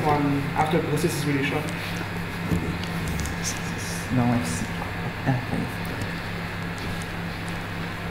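A man speaks into a handheld microphone, close by.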